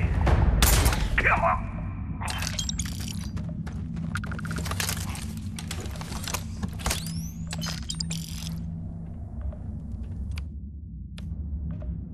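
Short electronic clicks sound as menus open and close.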